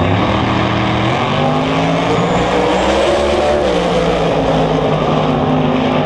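Two race cars roar as they accelerate hard down the track.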